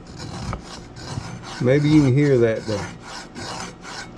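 Fingers rub lightly across the rough surface of a metal pan.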